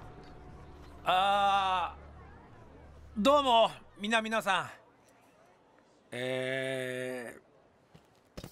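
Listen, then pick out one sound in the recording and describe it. A man shouts out loudly through a horn.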